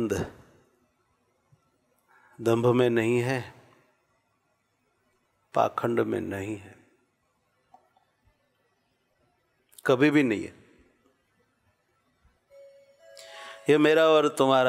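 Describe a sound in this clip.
A middle-aged man chants slowly into a microphone, in phrases with long pauses.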